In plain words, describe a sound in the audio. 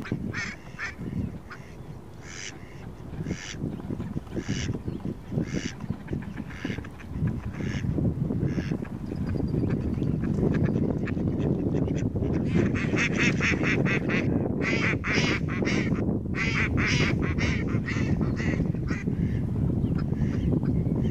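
A flock of ducks quacks and chatters close by.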